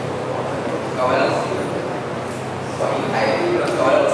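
A young man speaks into a microphone over loudspeakers in an echoing hall.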